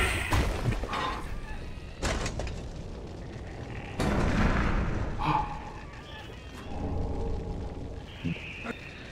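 A man murmurs and grunts in a low voice.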